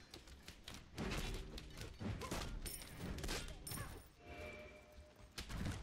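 Sharp weapon strikes and impacts clash in a fast fight.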